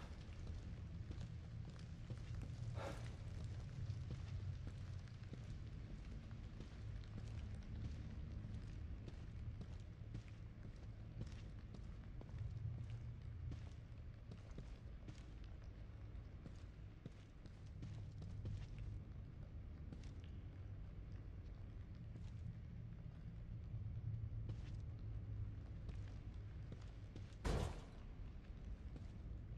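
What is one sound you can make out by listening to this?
Footsteps thud softly on a carpeted floor.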